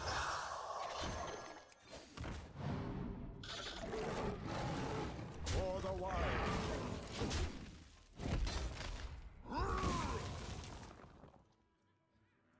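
Magical card game effects whoosh, chime and crash.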